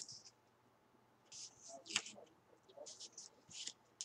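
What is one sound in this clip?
Tape peels off a roll with a sticky rip.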